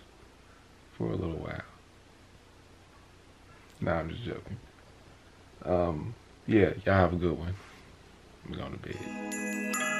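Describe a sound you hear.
A man speaks calmly, close by, in short phrases with pauses.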